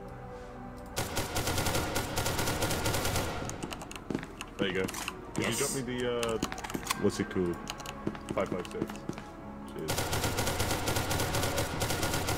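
Rifles fire in rapid bursts nearby.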